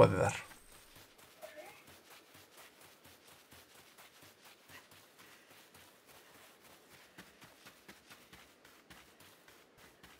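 Quick footsteps run over grass and dirt.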